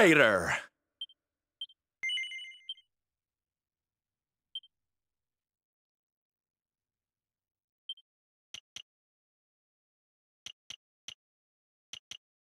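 Soft menu blips sound as selections are made.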